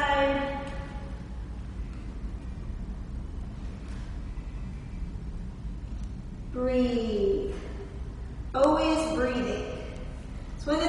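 A young woman speaks calmly nearby in a slightly echoing room.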